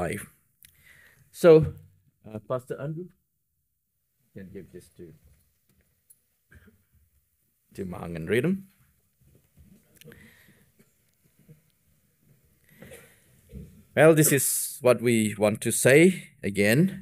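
A man speaks through a microphone with long pauses, then louder and more steadily near the end.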